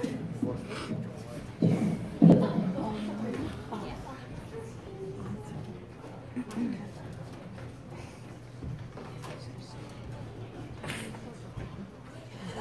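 An audience murmurs and laughs in a large echoing hall.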